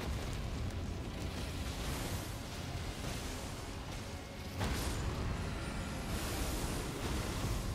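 A huge creature roars and stomps.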